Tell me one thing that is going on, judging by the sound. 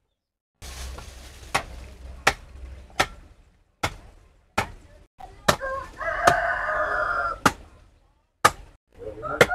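A machete chops into wood with sharp knocks.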